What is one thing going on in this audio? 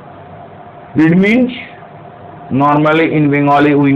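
An older man speaks calmly and clearly into a nearby microphone, as if teaching.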